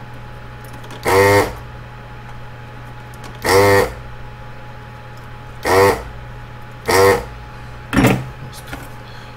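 A desoldering gun's vacuum pump whirs in short bursts.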